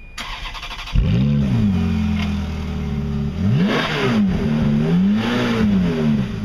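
A Ferrari F430 V8 with an aftermarket sport exhaust revs hard and drops back to idle.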